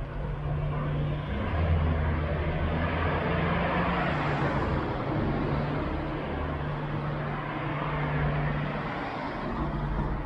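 Traffic hums along a nearby street, growing louder toward the end.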